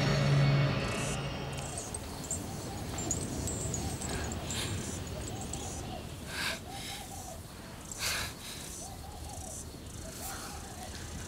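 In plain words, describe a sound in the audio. A woman groans weakly.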